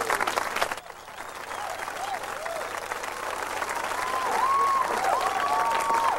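A trumpet plays a jazz tune.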